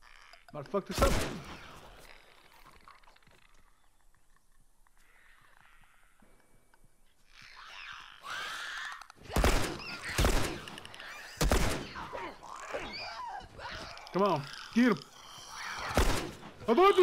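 Pistol shots ring out loudly, a few seconds apart.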